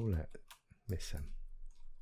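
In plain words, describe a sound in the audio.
A sword strikes a creature with a dull thud.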